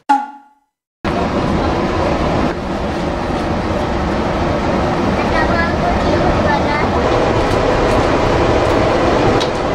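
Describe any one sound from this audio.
A train carriage rumbles steadily while moving.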